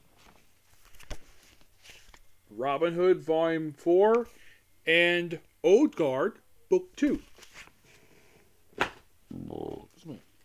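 Cardboard packages rustle and tap in a man's hands.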